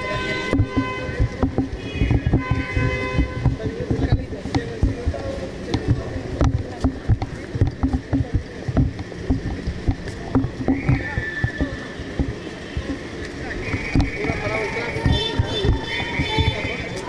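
Footsteps shuffle on pavement as a group walks.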